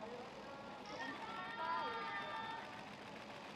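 Young women laugh and chat close by.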